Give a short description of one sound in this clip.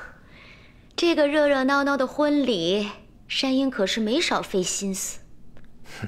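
A young woman speaks playfully and teasingly nearby.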